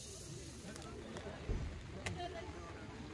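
An eggshell cracks.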